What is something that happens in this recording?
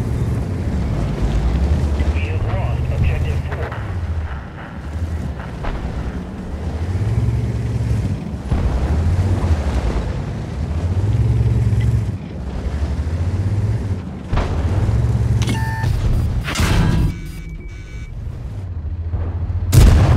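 A heavy tank engine rumbles low and steadily.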